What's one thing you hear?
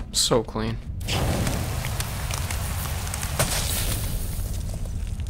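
Ice cracks and shatters with a loud crunching burst.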